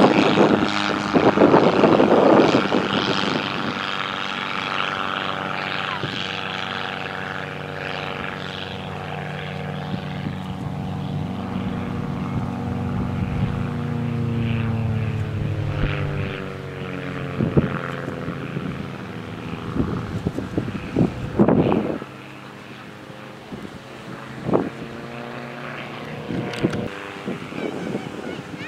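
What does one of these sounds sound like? A light aerobatic plane's single piston engine drones overhead, its pitch rising and falling through the manoeuvres.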